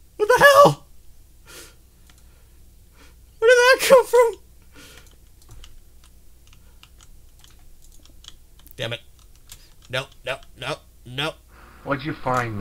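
A young man speaks with animation close to a microphone, in short bursts.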